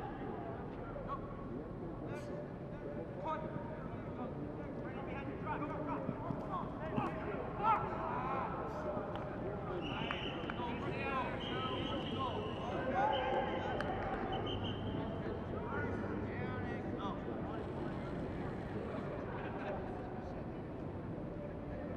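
Young men and women shout and call to each other across an open outdoor field.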